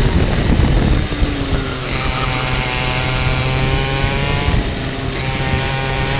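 Other kart engines whine nearby.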